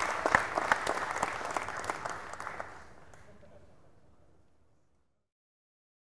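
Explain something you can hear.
A large crowd applauds and the clapping fades away.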